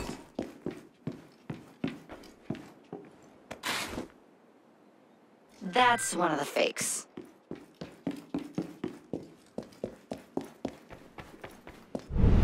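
Footsteps tap steadily on a hard floor.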